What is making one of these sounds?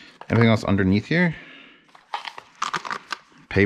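A small cardboard box is opened with soft rustles and clicks.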